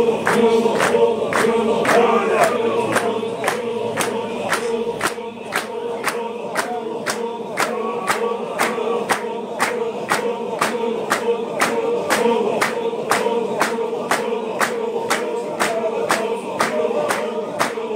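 A large group of men chant together loudly in a steady rhythm.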